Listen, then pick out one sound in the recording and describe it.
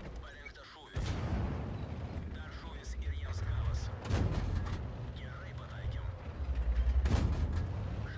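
A tank cannon fires with sharp booms.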